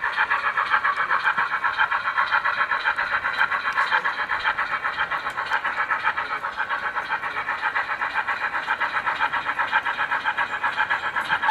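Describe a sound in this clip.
A small model steam locomotive chuffs quickly and steadily as it runs along the track.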